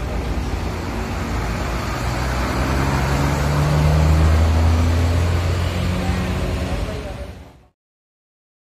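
A bus engine rumbles close by as the bus pulls away.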